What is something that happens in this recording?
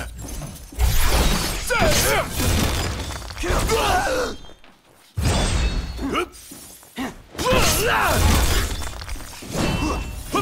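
A blade of lightning crackles and zaps.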